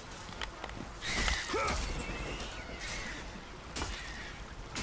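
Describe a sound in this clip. A winged creature screeches.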